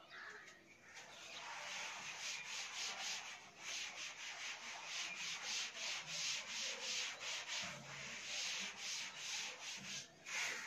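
A cloth rubs back and forth across a chalkboard in a quick rhythm.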